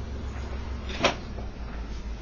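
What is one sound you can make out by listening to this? A glass clinks as it is lifted from a table.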